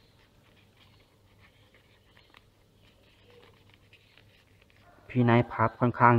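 Paper rustles and crinkles softly as it is folded.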